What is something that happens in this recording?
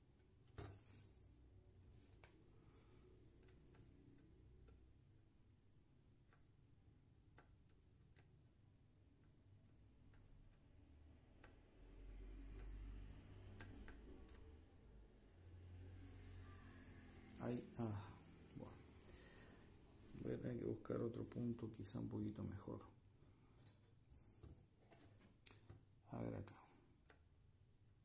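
Fingers press and tap on a circuit board with small clicks.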